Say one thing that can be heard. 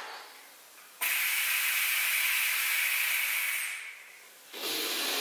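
A man blows hard into a mouthpiece with a steady rushing hiss.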